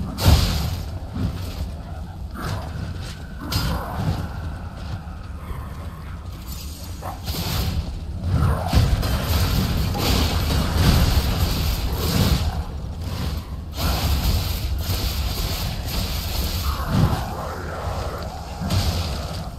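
Metal blades clash and strike in a fight.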